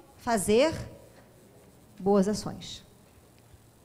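A woman speaks with animation through a microphone, in short bursts with pauses.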